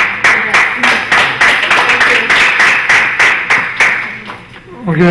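People clap their hands in a quick burst of applause.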